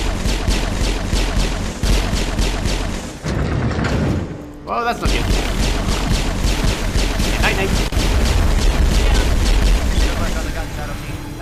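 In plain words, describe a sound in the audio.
Video game gunfire rattles in rapid bursts.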